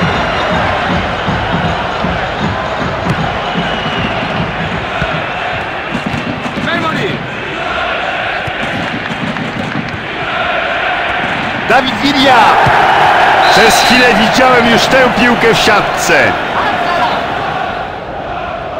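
A large crowd roars steadily in an echoing stadium and swells louder.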